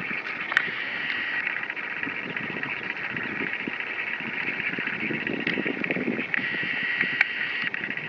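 A kayak paddle dips and splashes softly in calm water.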